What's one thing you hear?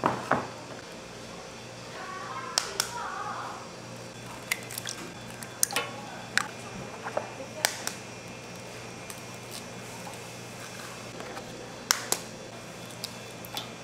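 Raw eggs splash softly into liquid yolks.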